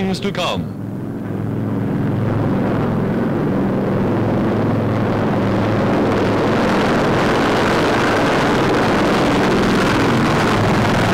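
Propeller engines of a large plane roar steadily as it flies low past.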